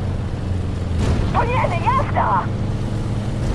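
Water splashes as a tank drives through a river.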